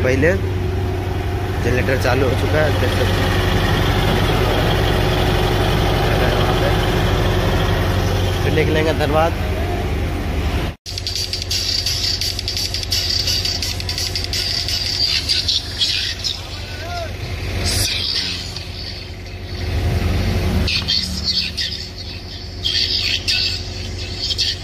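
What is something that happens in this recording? Loud music with a heavy bass plays from big loudspeakers.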